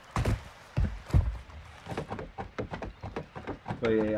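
Hands and feet knock on a wooden ladder while climbing.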